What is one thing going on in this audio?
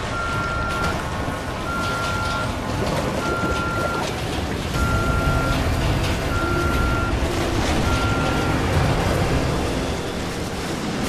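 Water splashes heavily as a man wades through it.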